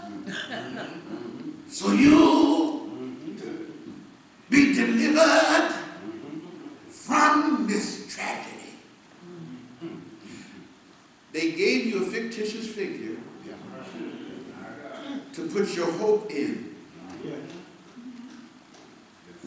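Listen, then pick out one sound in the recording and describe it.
A man preaches with animation into a microphone, his voice rising in loud bursts and echoing in the room.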